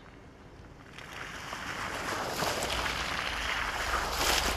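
Car tyres splash through shallow muddy water.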